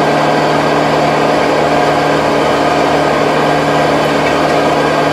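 A rotary tiller churns and rattles through soil.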